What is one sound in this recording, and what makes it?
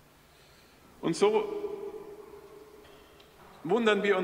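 A man chants in a sustained sung voice through a microphone, echoing in a large resonant hall.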